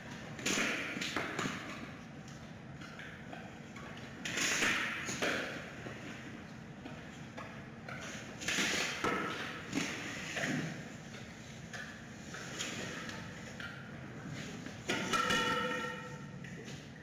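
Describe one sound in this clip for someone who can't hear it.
Bamboo poles knock and scrape against a hard floor.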